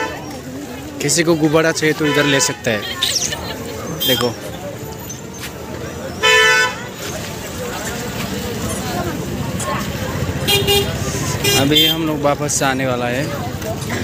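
Horns honk from passing auto-rickshaws on the road.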